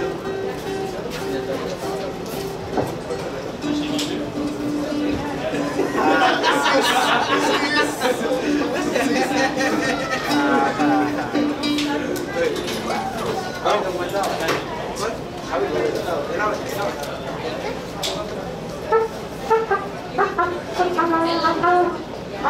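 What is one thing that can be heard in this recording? Guitars strum chords.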